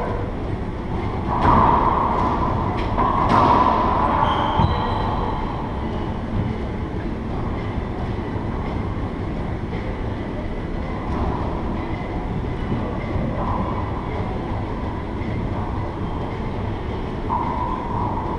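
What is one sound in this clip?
Sneakers squeak on a wooden floor.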